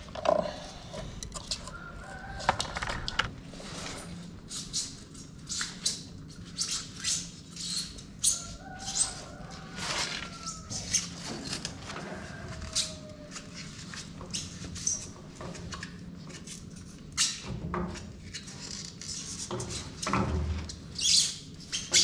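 Electrical wires rustle and scrape against a wall.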